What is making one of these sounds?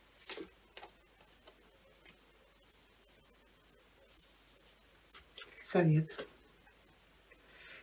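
Playing cards slide and tap softly on a cloth surface.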